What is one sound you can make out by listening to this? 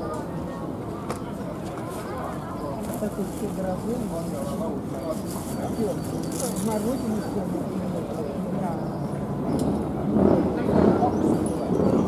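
A brass band plays a tune outdoors, getting louder toward the end.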